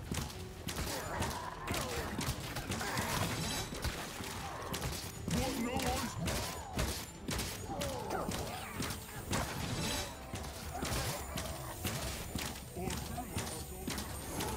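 Monsters snarl and growl.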